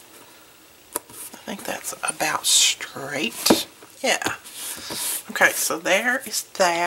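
Stiff card rustles and scrapes as hands lift and handle it.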